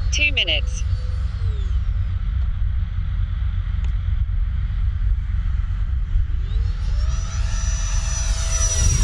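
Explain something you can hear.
A model jet's turbine whines overhead, dropping in pitch and then rising to a loud, steady high whine.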